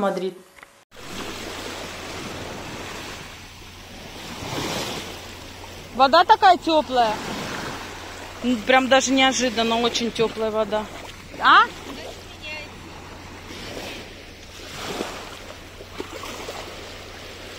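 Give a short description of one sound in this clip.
Small waves wash and lap gently at the shore.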